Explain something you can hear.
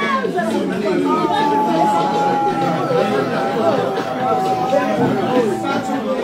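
A woman shouts out with excitement close by.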